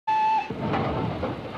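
A steam train whistle blows briefly.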